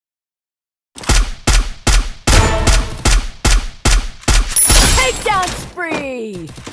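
Gunshots fire in rapid bursts, loud and close.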